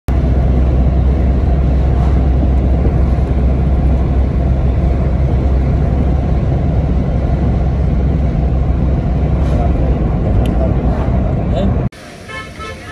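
A car drives along a road with a low, steady rumble of tyres and engine.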